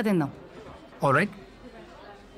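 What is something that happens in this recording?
A young man speaks a short phrase close by.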